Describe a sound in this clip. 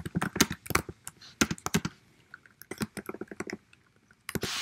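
Keyboard keys click in quick bursts.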